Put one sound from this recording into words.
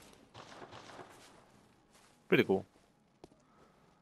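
Footsteps tread over soft ground.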